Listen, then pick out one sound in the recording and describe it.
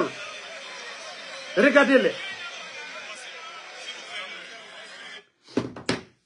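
A man's voice speaks through a television.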